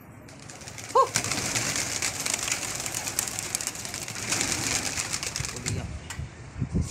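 Many pigeons take off with a loud flapping of wings.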